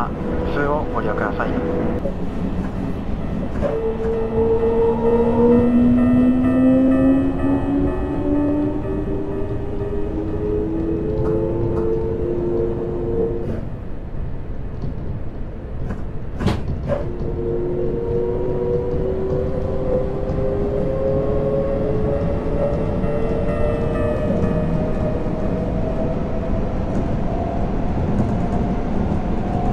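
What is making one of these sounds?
Train wheels rumble and clack steadily over the rails.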